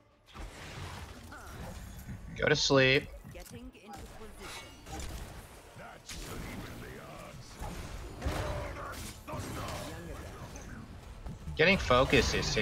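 Magic blasts and clashing fight effects crackle and boom.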